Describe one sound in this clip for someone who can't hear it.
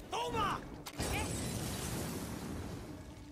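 A fire bursts and roars.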